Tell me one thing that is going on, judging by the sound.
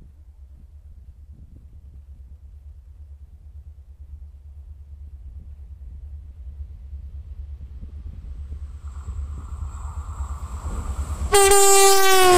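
A diesel locomotive approaches, its engine growing louder.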